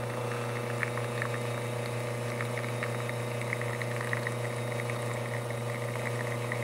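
An espresso machine pump hums steadily.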